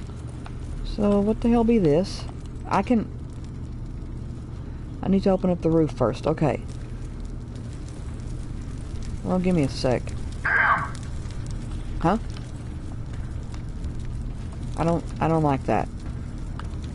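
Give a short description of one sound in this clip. A man speaks calmly through a microphone in short bursts.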